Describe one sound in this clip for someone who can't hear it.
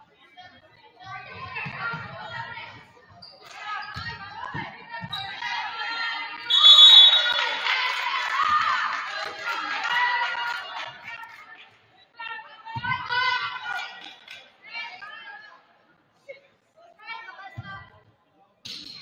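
A basketball bounces on a hardwood floor in an echoing gym.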